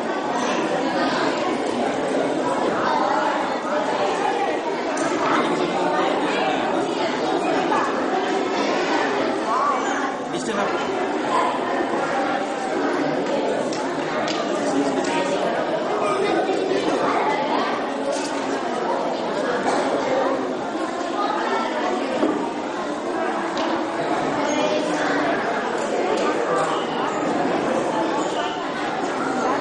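A crowd of people chatters.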